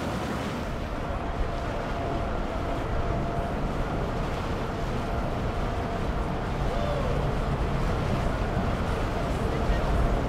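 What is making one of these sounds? Several men talk and call out loudly from a boat.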